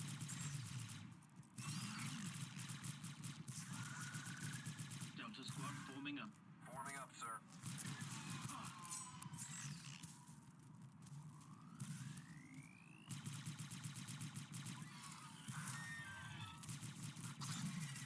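Blaster fire crackles in rapid bursts.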